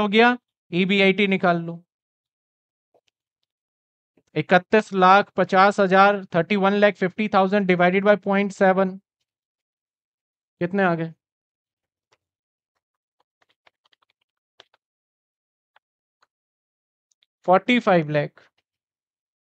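A man explains calmly into a close microphone, in short bursts with pauses.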